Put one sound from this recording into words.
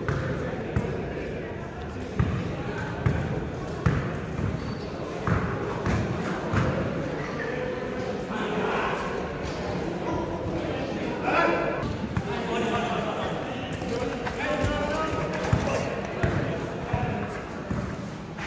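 A basketball bounces on a hard court, echoing in a large hall.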